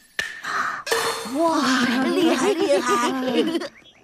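A young boy speaks cheerfully.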